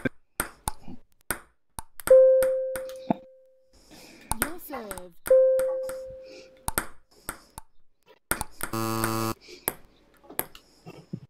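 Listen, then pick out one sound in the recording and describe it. A ping pong ball clicks sharply off paddles and a table in a quick rally.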